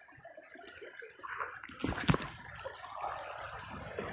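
Fabric rustles close to the microphone.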